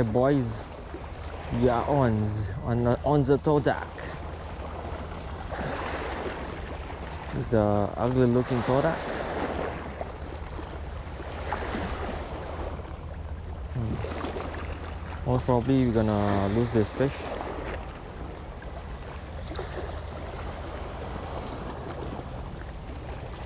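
Small waves lap and splash against a rocky shore.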